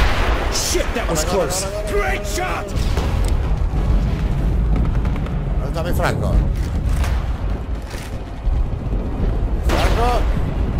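A young man talks close to a microphone.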